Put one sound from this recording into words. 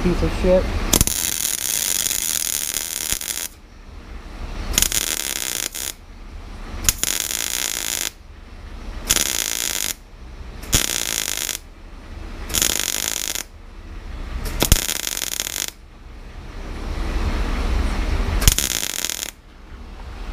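A welder crackles and buzzes in short bursts.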